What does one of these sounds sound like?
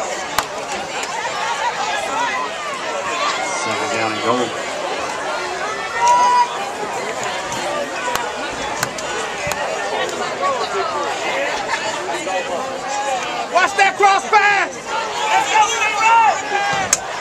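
Young men on the sideline shout and call out.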